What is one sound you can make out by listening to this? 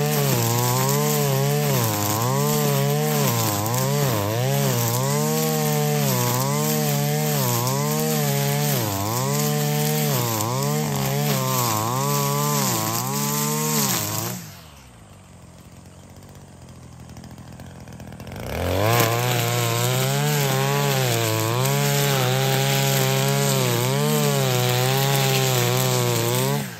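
A string trimmer engine whines loudly, revving up and down, and drops briefly to a low idle.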